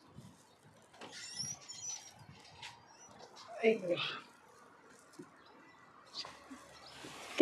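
A plastic crate clatters as it is lifted and set down.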